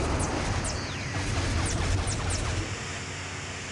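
Lightsabers hum and swoosh as they swing.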